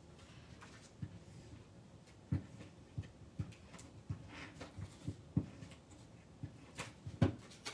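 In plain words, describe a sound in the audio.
Paper cards tap and rustle softly against a table.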